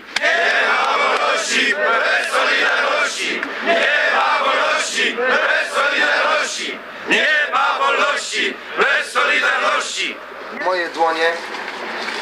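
A large crowd of men sings together outdoors.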